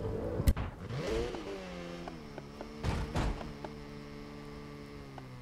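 A car engine revs and whines as the car drifts.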